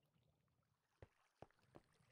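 Stone blocks are set down with dull knocks.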